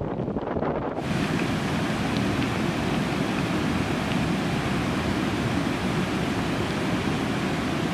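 Muddy water pours over rocks and splashes loudly.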